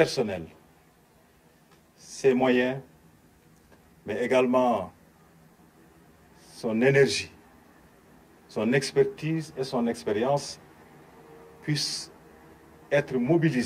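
A man speaks slowly and firmly into microphones, in short phrases with pauses.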